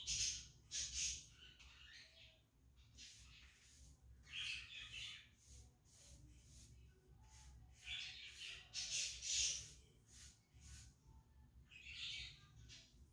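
A cloth rubs and scrubs against a cabinet door in short bursts.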